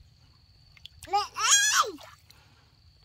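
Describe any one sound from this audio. A young child squeals loudly nearby.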